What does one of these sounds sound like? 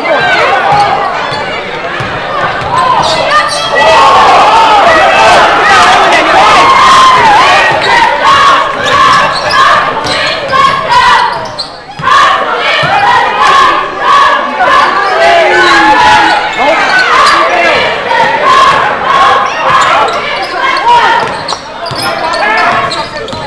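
A large crowd cheers and shouts in an echoing gym.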